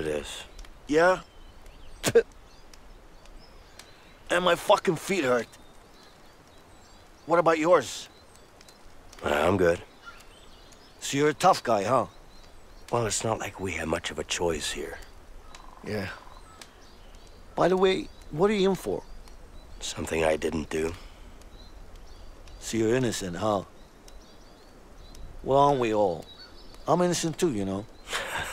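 A second man answers calmly and close by.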